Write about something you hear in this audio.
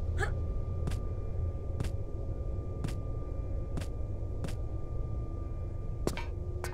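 Hands and feet clank on metal ladder rungs in a slow, steady climbing rhythm.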